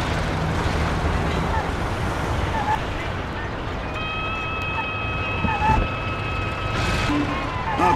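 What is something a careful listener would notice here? An old car engine rumbles steadily as the car drives along.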